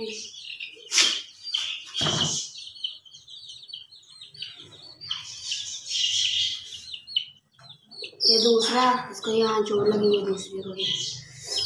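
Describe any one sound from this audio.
A chick peeps rapidly and shrilly, close by.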